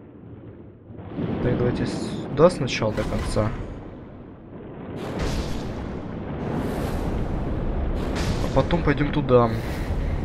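Water bubbles and churns, muffled as if heard underwater.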